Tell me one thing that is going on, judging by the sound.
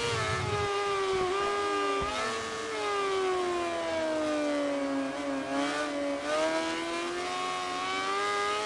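A motorcycle engine whines loudly, its pitch falling while braking and rising again as it speeds up.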